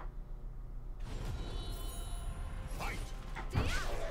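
Music and effects from a video game start up.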